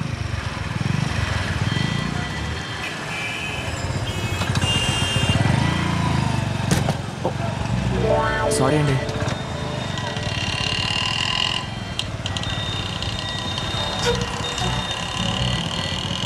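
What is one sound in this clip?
Scooter and motorbike engines hum in busy traffic.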